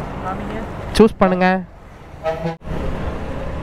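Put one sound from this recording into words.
A woman speaks loudly close by.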